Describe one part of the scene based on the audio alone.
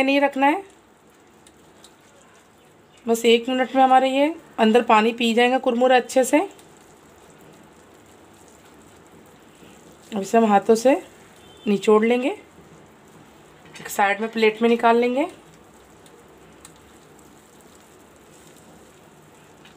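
Puffed rice rustles as a hand stirs it in a metal bowl.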